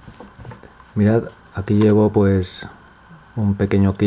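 Small metal tools clink in a plastic cup.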